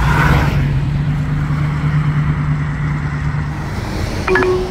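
A hot rod's engine rumbles as it drives away.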